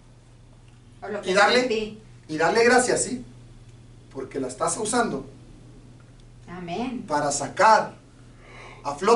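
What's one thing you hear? An older man speaks with animation through a microphone.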